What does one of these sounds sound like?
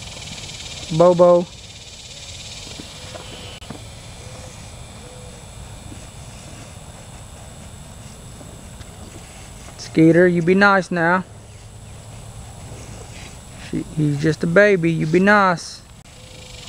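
A young calf bawls loudly several times.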